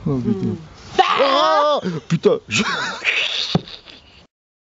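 A woman laughs loudly.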